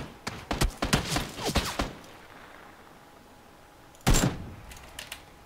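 A rifle fires a series of sharp, loud shots that ring out briefly.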